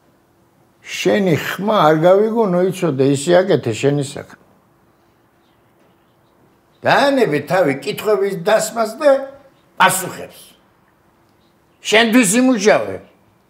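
An elderly man speaks with animation close by.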